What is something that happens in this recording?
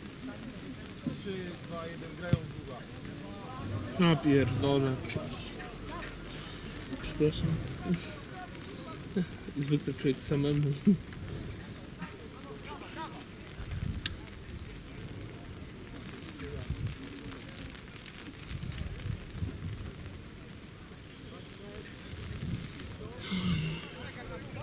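Men shout to each other across an open field in the distance.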